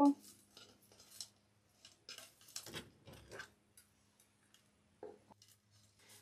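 Cardboard rustles and scrapes as hands handle it.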